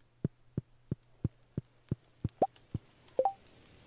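Soft footsteps tap at a steady, quick pace.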